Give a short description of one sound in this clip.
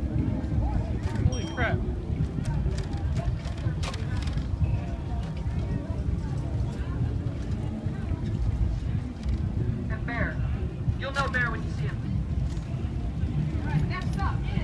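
Young men and women call out and chatter nearby.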